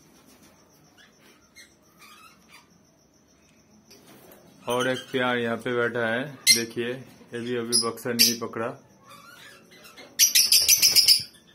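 Small parrots chirp and screech shrilly close by.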